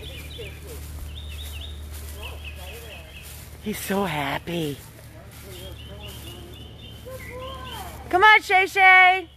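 Footsteps swish softly through grass.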